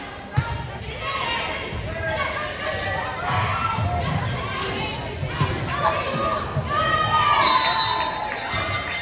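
Young women players shout and call out to each other.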